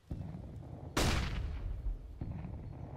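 A sniper rifle fires a single loud shot that echoes briefly.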